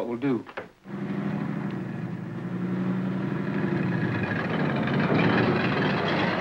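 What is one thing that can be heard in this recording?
A truck engine idles and revs.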